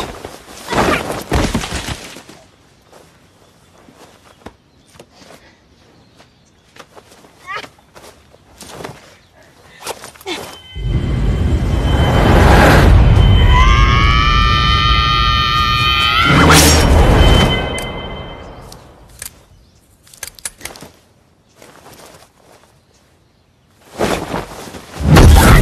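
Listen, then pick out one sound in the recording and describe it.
Heavy blows land with dull thuds and clothing swishes.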